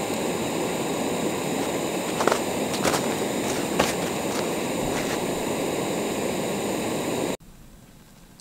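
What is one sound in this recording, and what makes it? A camping stove burner roars steadily.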